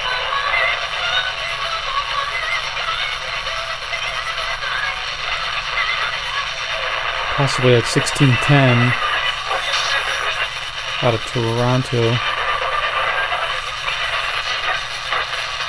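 A small portable radio hisses with static.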